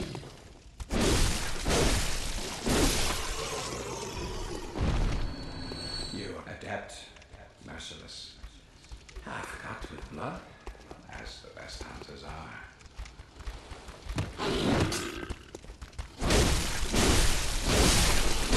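Weapons slash and strike with heavy thuds.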